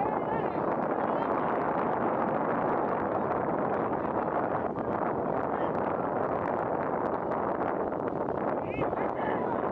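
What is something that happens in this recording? Young players shout to each other across a field.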